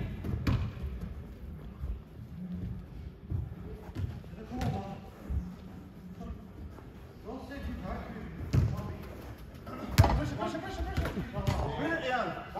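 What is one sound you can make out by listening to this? A football thuds as players kick it.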